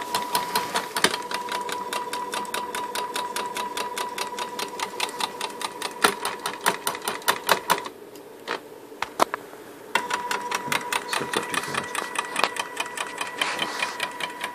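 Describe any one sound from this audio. A stepper motor whines with a steady tone as it drives a carriage along a lead screw, stops briefly, then runs again.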